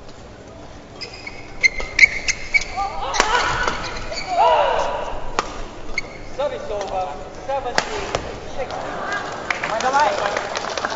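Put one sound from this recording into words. A badminton racket hits a shuttlecock.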